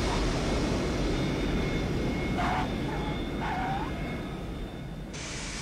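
A jet airliner's engines roar loudly as the plane touches down on a runway.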